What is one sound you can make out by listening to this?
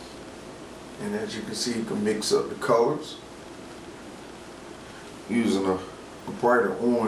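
A man speaks briefly in short bursts nearby.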